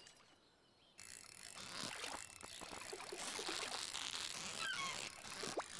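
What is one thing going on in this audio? A reeling sound whirs steadily as a fish is fought.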